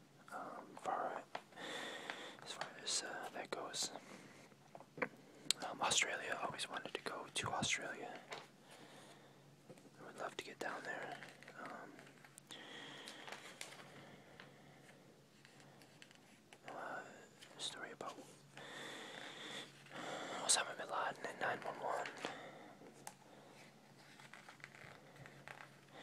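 Glossy magazine pages rustle and flap as they are turned.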